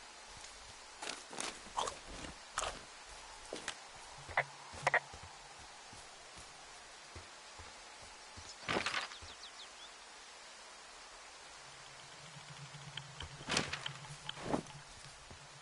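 Footsteps crunch through dry brush and undergrowth.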